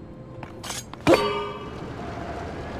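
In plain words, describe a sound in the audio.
A heavy stone block clatters and crashes loudly.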